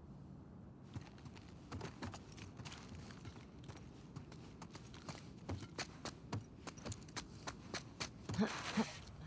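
Footsteps thud on a wooden floor and stairs indoors.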